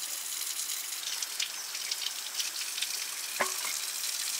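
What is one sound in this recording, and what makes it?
Water runs from a tap and splashes.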